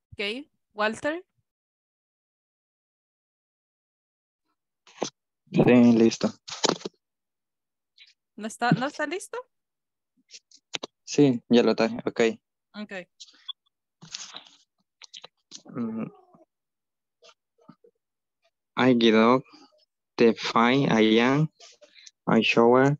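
A woman speaks calmly through an online call, in bursts with pauses.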